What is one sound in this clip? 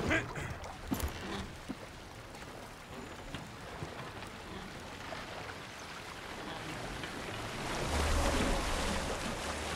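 Water laps and splashes against a rowed boat.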